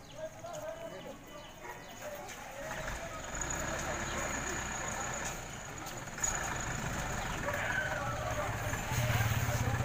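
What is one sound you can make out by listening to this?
Several men and women talk with each other outdoors.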